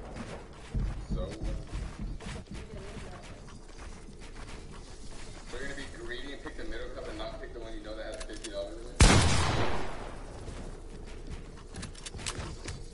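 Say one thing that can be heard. A game character's footsteps patter on wooden floors.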